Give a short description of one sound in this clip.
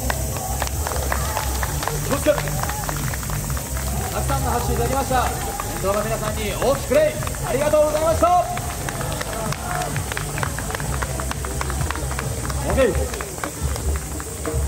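Loud festival music with a steady drumbeat plays over loudspeakers outdoors.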